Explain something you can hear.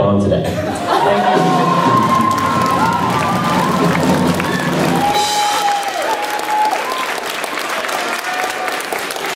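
An audience cheers and applauds.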